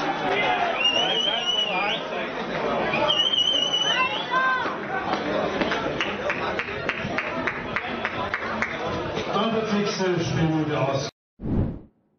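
A small crowd cheers outdoors.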